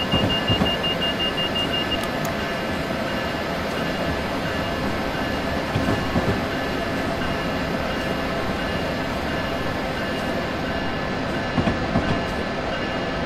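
Train wheels thump over rail joints.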